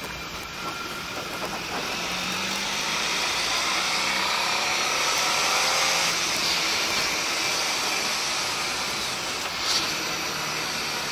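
Wind rushes loudly past a motorcycle riding at speed.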